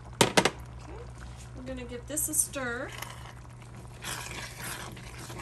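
A wooden spoon stirs moist ground meat with soft squelching.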